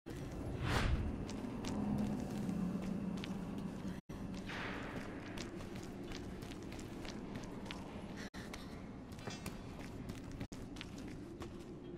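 Footsteps crunch on a gritty floor.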